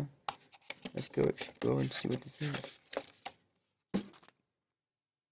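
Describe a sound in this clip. A cardboard box rustles and scrapes as it is handled.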